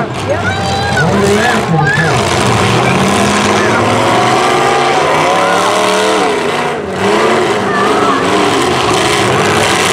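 Metal crunches as cars smash into each other.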